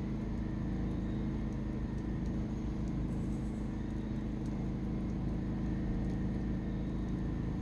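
A wood fire crackles and pops with small sharp snaps.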